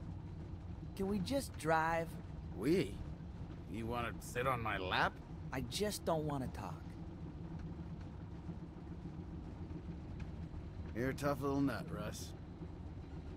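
A man speaks in a relaxed, teasing voice.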